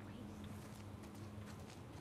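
Tall grass rustles as a woman crawls through it.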